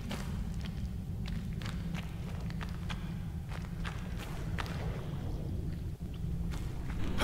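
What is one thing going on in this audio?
A deep underwater rumble drones steadily.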